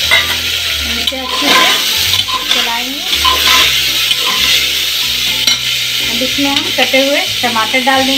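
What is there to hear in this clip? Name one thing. A metal spatula scrapes and stirs inside a pot.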